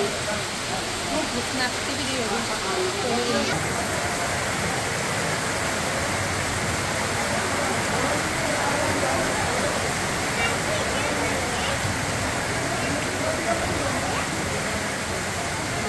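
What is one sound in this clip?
A crowd of men shout and call out to each other nearby.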